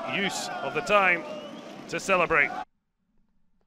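Young men sing and shout joyfully close by.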